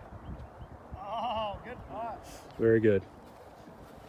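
A man exclaims loudly close by.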